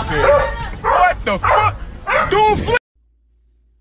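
Young men shout and laugh loudly nearby.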